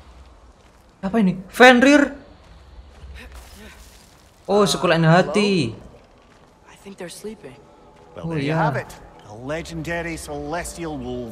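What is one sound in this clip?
A young man talks close to a microphone, with animation.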